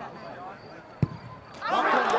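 A boot thuds against a football.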